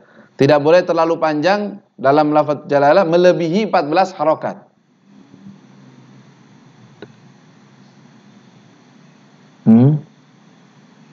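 A young man speaks calmly into a microphone, in a melodic reciting tone.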